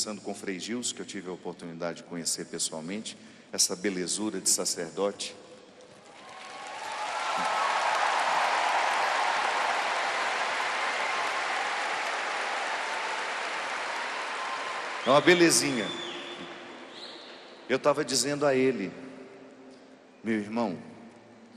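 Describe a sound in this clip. A man speaks with animation through a microphone and loudspeakers, echoing in a large space.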